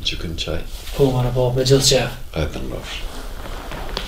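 A younger man speaks and laughs nearby.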